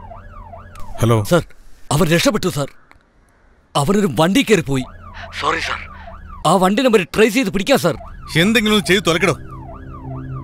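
A man speaks tensely on a phone, close by.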